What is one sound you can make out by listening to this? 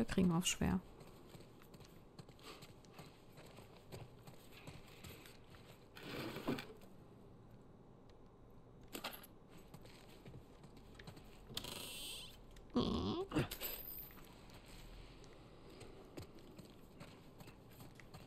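Footsteps tread softly on a hard floor indoors.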